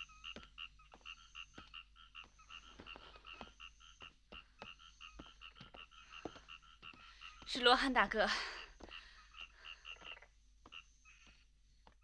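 Footsteps walk slowly on stone.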